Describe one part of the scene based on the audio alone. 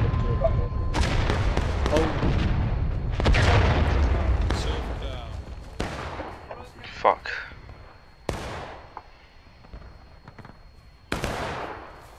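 Cannons boom in the distance, echoing across open ground.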